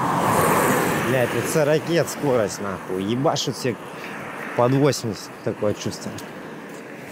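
A man talks calmly and close by, outdoors.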